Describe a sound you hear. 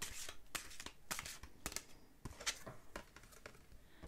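A card is set down on a table with a soft tap.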